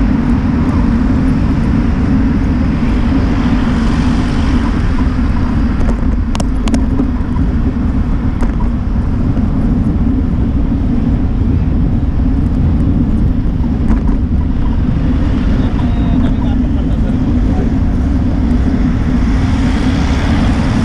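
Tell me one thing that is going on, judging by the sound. Wind buffets the microphone steadily while moving.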